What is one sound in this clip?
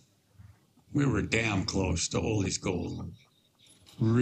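An elderly man speaks calmly and low.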